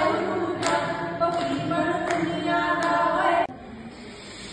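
A woman speaks with feeling through a microphone.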